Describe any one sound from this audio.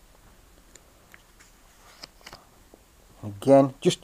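A page of a book rustles as it turns.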